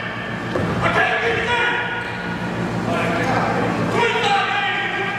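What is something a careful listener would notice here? Young players shout to each other in an echoing gym.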